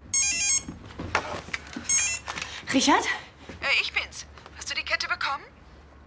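A woman talks on the telephone with animation.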